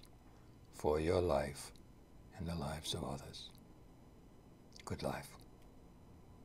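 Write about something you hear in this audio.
An elderly man speaks slowly and hoarsely close to a microphone, in short bursts with pauses.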